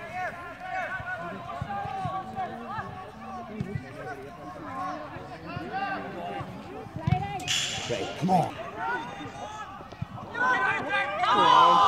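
Spectators shout and call out around an outdoor football pitch.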